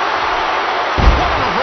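A body slams heavily onto a wrestling mat with a deep thud.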